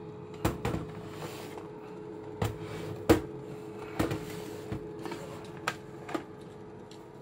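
A hand knocks and clicks against a plastic projector case.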